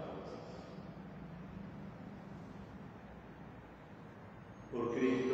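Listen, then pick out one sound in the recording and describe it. A man chants slowly into a microphone, echoing in a large hall.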